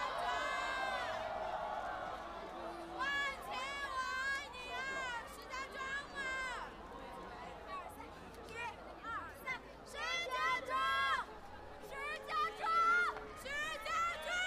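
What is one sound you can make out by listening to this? A large crowd sings and cheers loudly outdoors.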